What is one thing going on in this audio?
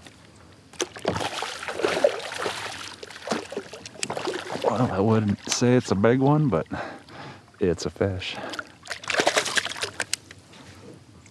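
A fish splashes and thrashes in shallow water.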